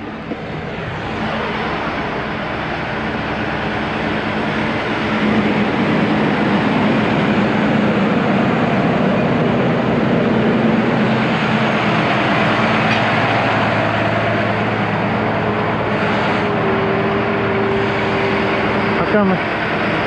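A large truck engine idles nearby with a steady rumble.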